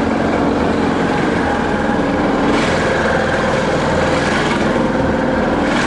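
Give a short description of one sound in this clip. Tall grass and brush swish against a moving vehicle.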